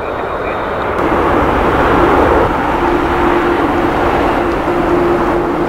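A jet airliner's engines whine and rumble as it approaches far off.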